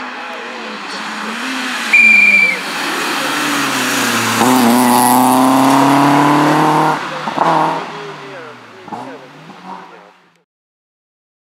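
A rally car engine roars close by, revving hard, then fades into the distance.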